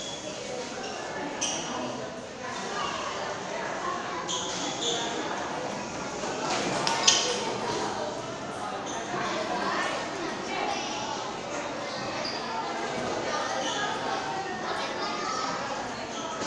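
A ping-pong ball clicks sharply on paddles and the table.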